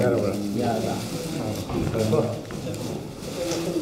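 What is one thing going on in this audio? Calendar pages rustle as they are unrolled.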